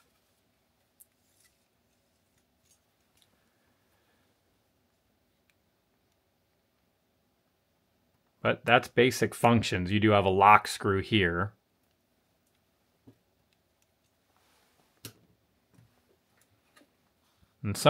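Metal calipers click and tap softly on a hard surface.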